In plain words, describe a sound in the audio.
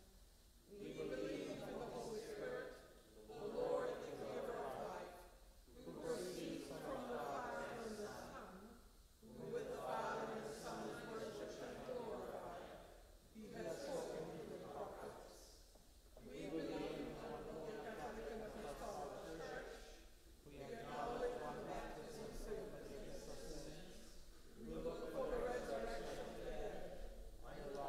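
A man chants a prayer in a large echoing hall, pausing between phrases.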